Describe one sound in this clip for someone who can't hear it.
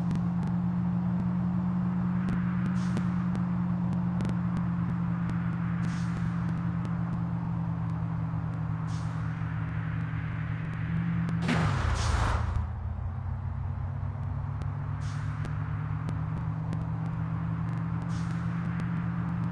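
A car engine drones steadily at high revs.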